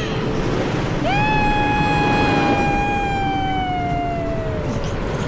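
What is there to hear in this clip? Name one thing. A young boy shouts with excitement.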